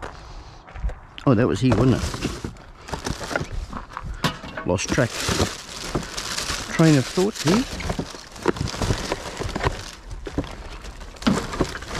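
Rubbish and paper rustle as they are pushed into a plastic bin.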